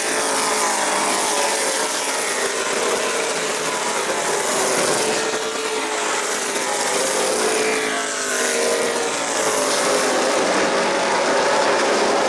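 Race car engines roar loudly as cars speed around a track.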